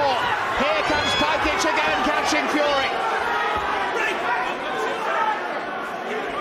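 A crowd shouts and cheers.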